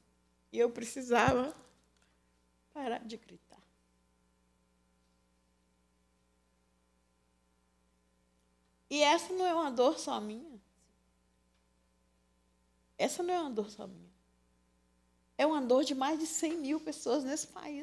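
An older woman speaks into a microphone in bursts, with pauses between them.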